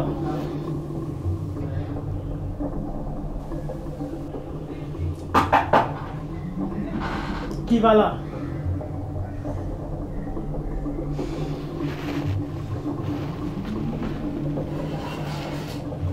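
A young man groans and sobs in distress close by.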